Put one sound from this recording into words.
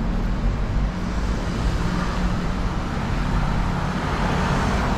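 Car tyres hiss on a wet road as a vehicle passes close by.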